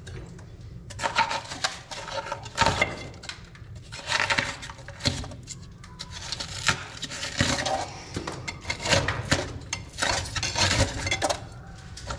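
A metal scraper scrapes and rasps against hardened foam in short strokes.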